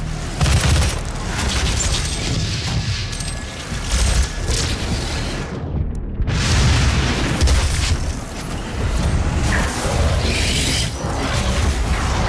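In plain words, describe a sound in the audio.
Monsters snarl and roar.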